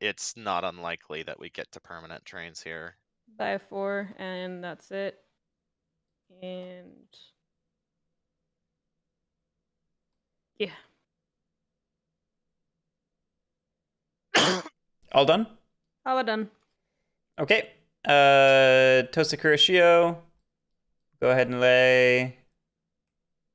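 A young man talks calmly into a close microphone, in bursts with pauses.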